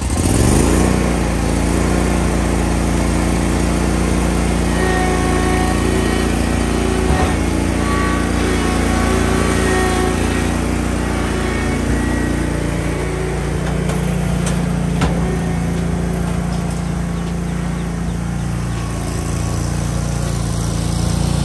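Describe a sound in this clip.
A mower engine rumbles steadily close by, then drives away and grows fainter.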